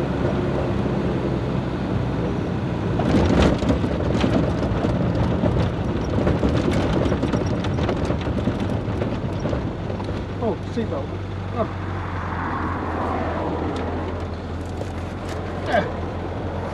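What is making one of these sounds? A car engine rumbles steadily up close.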